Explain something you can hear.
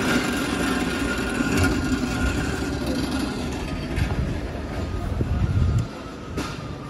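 A pallet jack rolls and rattles over concrete.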